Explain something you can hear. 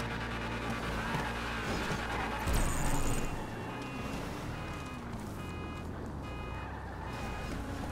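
A car engine revs and roars as the car swings around.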